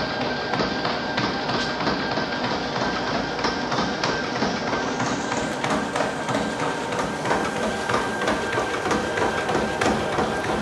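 Running feet thud rhythmically on a treadmill belt.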